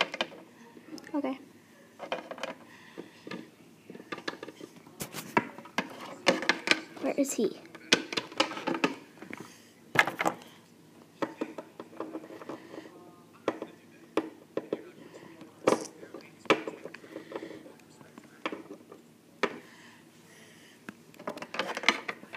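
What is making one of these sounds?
A small plastic toy taps and clicks on a hard floor.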